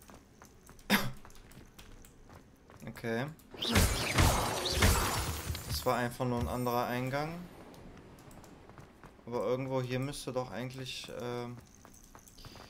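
Footsteps hurry over stone.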